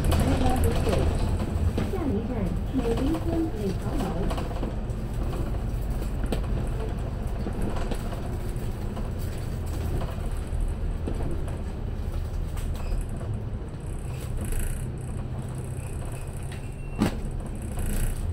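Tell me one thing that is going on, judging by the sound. A bus engine rumbles low and steady while driving.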